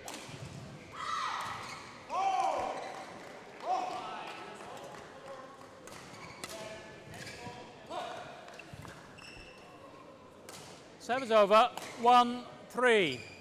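Sports shoes squeak sharply on a court floor.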